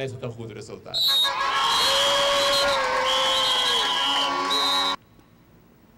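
A plastic horn blares loudly in a crowd.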